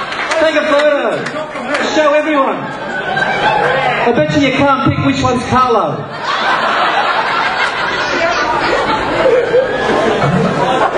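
A crowd of guests murmurs and chatters in the background.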